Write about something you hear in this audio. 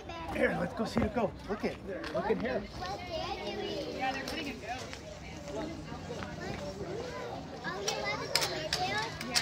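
Several people talk nearby outdoors.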